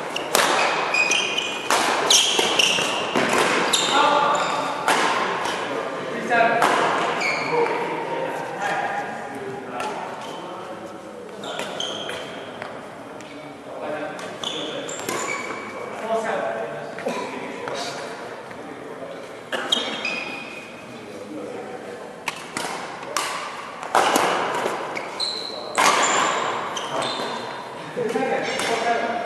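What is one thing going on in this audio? Rackets strike a shuttlecock with sharp, echoing pops.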